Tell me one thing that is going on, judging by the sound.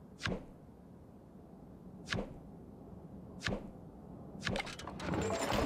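Short soft swooshes play as menu panels open and close.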